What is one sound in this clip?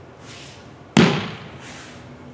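A body thumps down onto a padded mat.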